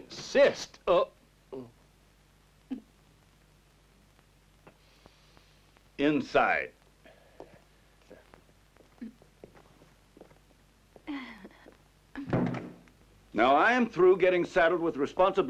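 Men talk in short exchanges.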